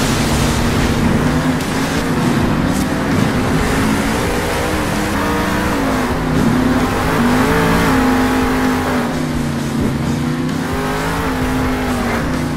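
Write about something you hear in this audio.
Big tyres crunch over gravel and dirt.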